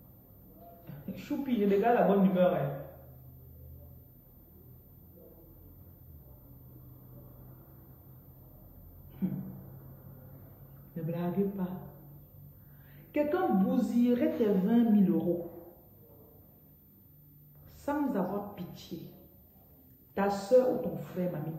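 A woman speaks calmly and close to a phone microphone, in short bursts with pauses.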